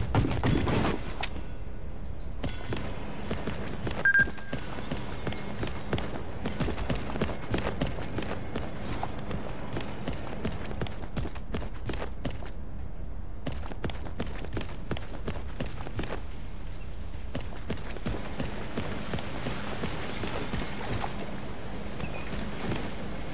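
Footsteps tread quickly over stone.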